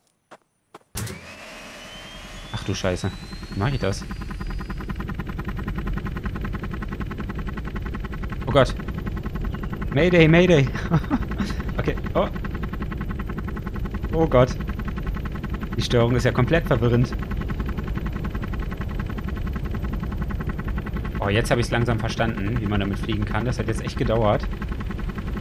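A helicopter engine starts up, whining higher, then drones steadily with beating rotor blades.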